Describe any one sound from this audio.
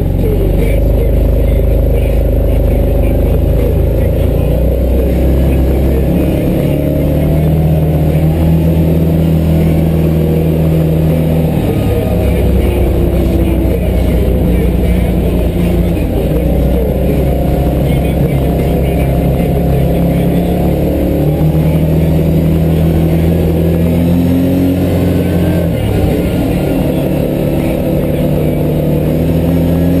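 Tyres rumble and crunch over a rough dirt road.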